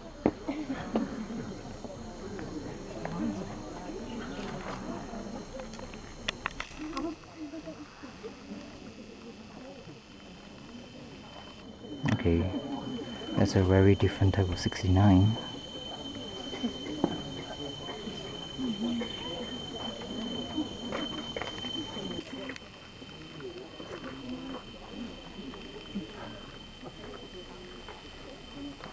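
People murmur quietly nearby.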